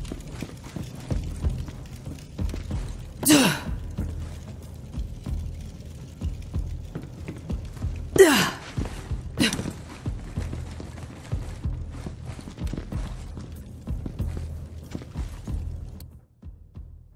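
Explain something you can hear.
Heavy footsteps thud steadily while walking.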